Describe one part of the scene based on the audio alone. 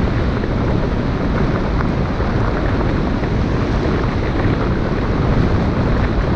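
A vehicle drives steadily over a gravel road, with tyres crunching and rumbling.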